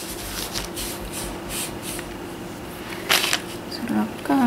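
A hand brushes and rustles against crinkly plastic sheeting.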